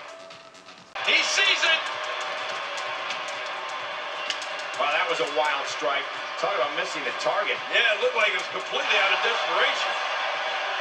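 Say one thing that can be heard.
A crowd cheers and roars through a television speaker.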